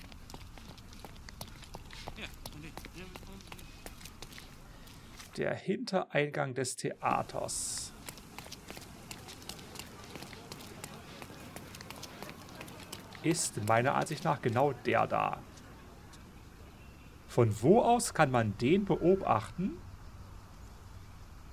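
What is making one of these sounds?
Footsteps hurry over paving stones.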